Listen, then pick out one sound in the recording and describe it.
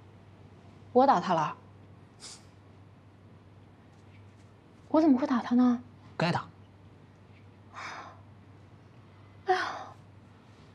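A young woman speaks in short, upset bursts close by.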